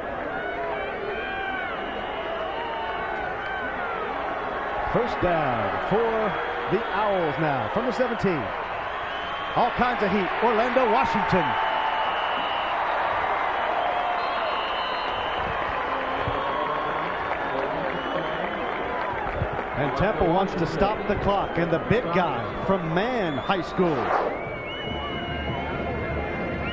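A large crowd roars and cheers in an open stadium.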